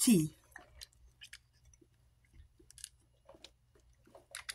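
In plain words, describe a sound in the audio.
A young woman sips a drink through a straw.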